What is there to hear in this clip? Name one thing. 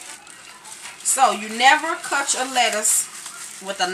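Plastic wrap crinkles as a lettuce is unwrapped.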